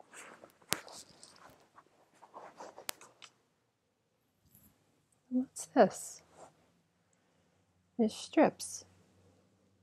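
A woman speaks calmly, telling a story.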